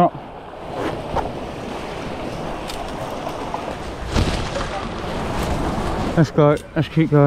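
A stream rushes and splashes close by.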